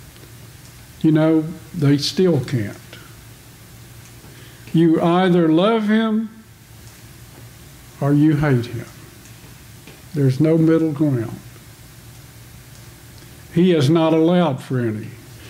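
A man speaks calmly into a microphone in short phrases with pauses, in a room with a slight echo.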